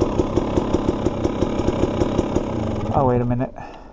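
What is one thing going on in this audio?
A dirt bike engine idles with a fast, steady chugging.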